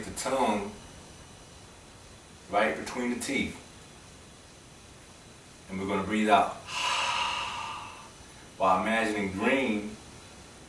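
A man chants slowly in a deep, sustained voice, close by.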